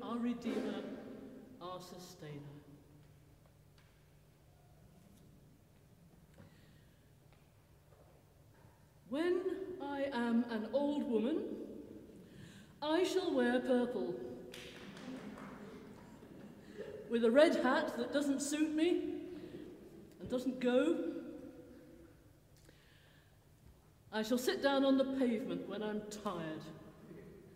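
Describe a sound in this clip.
An elderly woman speaks calmly through a microphone in a large echoing hall, with pauses between phrases.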